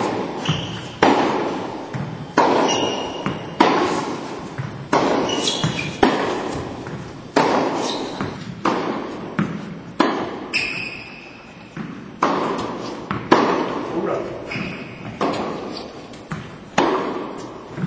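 Tennis balls are struck with sharp pops, echoing around a large indoor hall.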